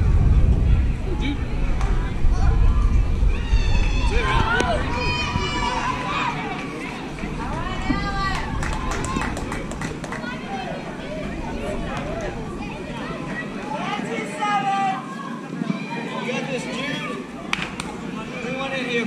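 Young boys shout and cheer outdoors across an open field.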